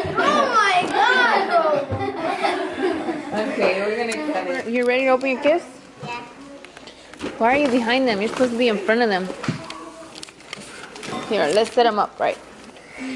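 Young children sing loudly and happily together.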